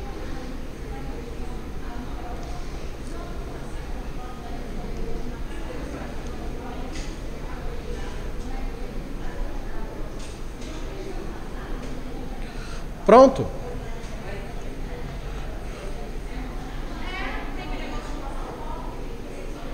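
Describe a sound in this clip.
A man talks calmly and steadily, close to a microphone.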